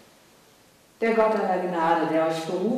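A middle-aged woman intones a blessing in an echoing hall.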